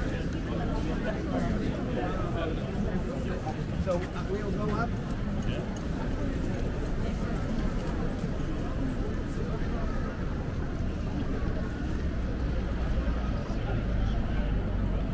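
Footsteps shuffle on pavement close by.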